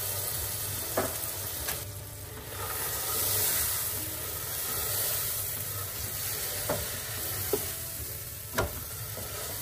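A wooden spoon knocks and scrapes against a pan.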